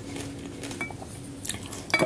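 A wooden spoon scrapes a ceramic plate.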